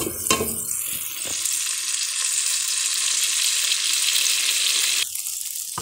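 Food sizzles in a hot pot.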